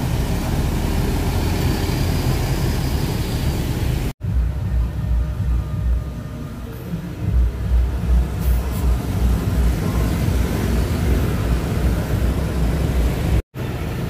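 Motorbikes rev and buzz past.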